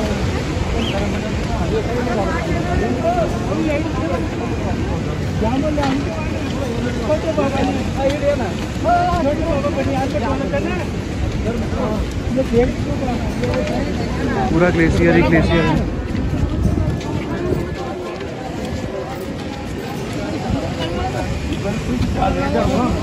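A crowd of men and women talks and calls out all around, close by.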